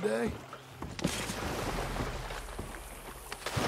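Something heavy splashes into water.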